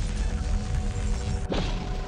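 A weapon fires a crackling energy blast.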